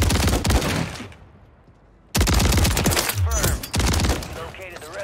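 Automatic shotgun blasts fire in rapid bursts.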